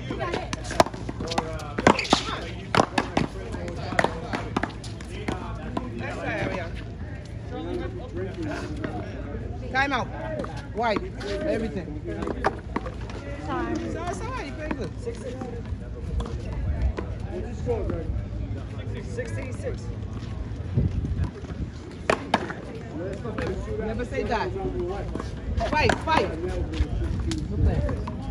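Men and women talk casually nearby, outdoors.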